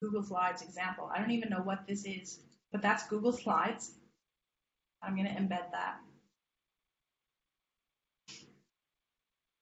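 A woman speaks calmly into a close microphone, with short pauses.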